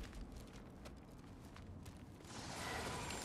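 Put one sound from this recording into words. Footsteps crunch on loose stone.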